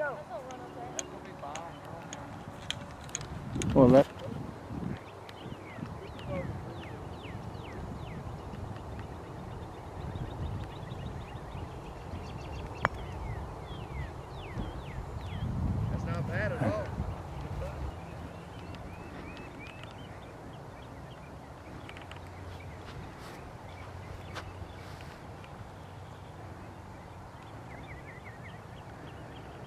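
Wind rumbles across open ground.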